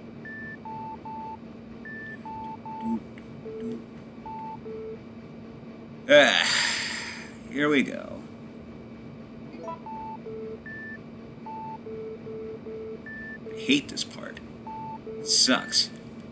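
Short electronic beeps sound in an uneven pattern at different pitches.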